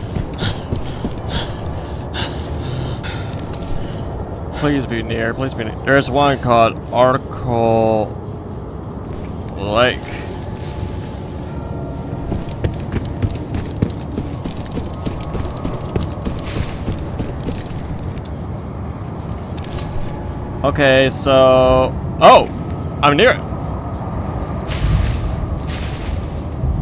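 Footsteps rustle through dry grass and brush.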